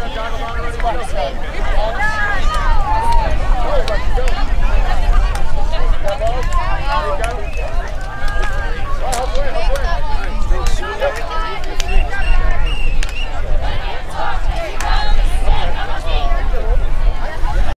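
Young women shout and chatter across an open field.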